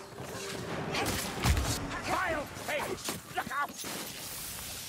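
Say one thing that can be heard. Heavy weapon blows strike in quick succession.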